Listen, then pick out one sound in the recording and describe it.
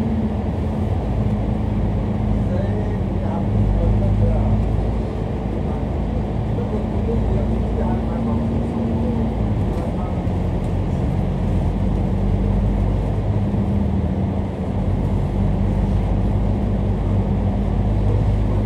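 Traffic rumbles and echoes in an enclosed tunnel.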